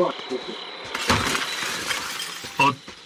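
Glass shatters as a window breaks.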